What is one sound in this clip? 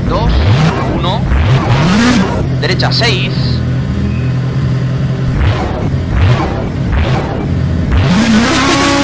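A rally car engine idles and revs.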